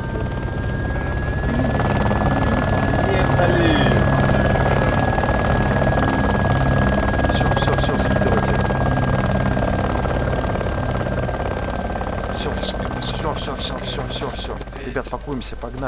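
A helicopter's rotor thumps and drones overhead.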